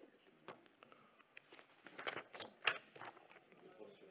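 Paper rustles as sheets are handled close by.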